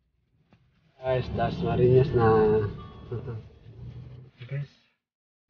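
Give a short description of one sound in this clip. A man speaks with animation close to a phone microphone.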